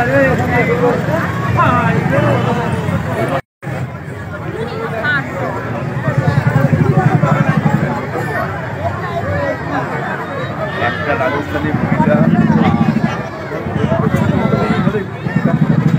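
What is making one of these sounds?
Music with a steady beat plays loudly over loudspeakers.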